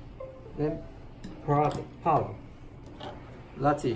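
A plug snaps into a power socket.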